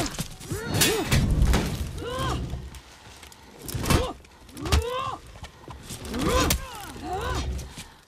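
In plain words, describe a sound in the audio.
Swords swoosh through the air.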